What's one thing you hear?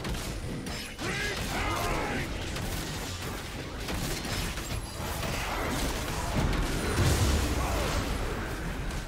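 Spell blasts boom and crackle.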